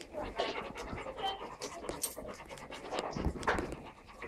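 A dog's claws click on a hard floor.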